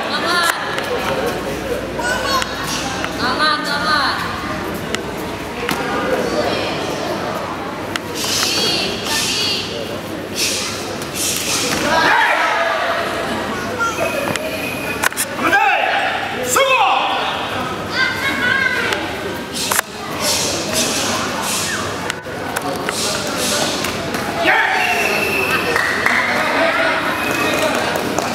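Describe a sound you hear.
A crowd of spectators murmurs and shouts in a large echoing hall.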